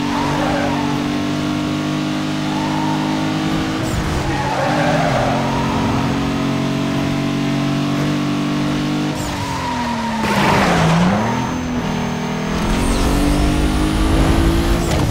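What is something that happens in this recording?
A racing car engine roars at high revs, dropping in pitch through a turn and climbing again.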